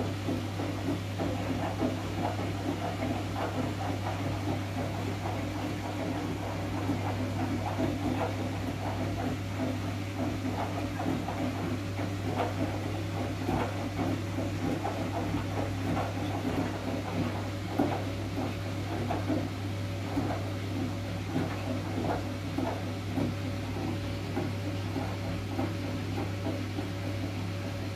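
Water swirls and gurgles steadily in a spinning drum.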